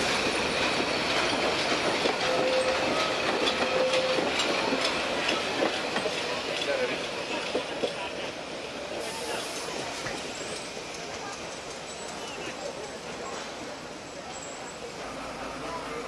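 A small train rolls past, its wheels clattering on the rails.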